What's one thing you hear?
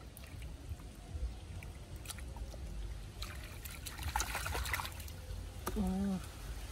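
Water splashes and trickles as hands stir it.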